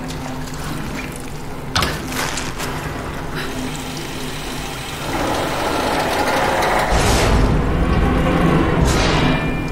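Feet clank on the rungs of a metal ladder.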